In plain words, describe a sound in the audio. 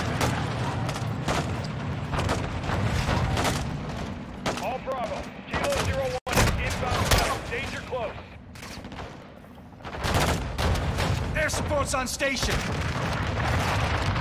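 Gunfire and explosions crack and boom outside.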